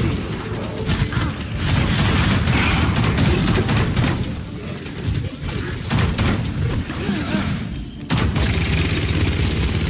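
Gunfire from a game weapon crackles in rapid bursts.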